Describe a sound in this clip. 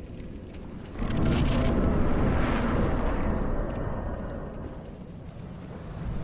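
A deep, rushing whoosh swells and slowly fades.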